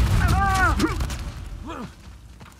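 Gunshots fire rapidly at close range.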